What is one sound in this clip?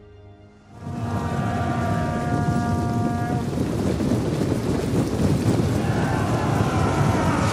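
Many horses gallop, their hooves rumbling heavily.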